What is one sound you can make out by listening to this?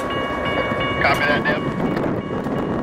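A train horn blares briefly nearby.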